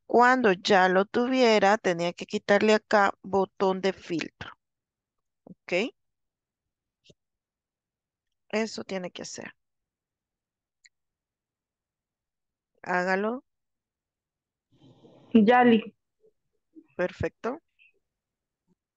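A woman talks calmly into a microphone, in short bursts with pauses.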